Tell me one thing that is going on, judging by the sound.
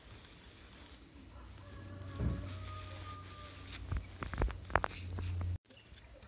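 Plastic sheeting rustles and crinkles as it is folded.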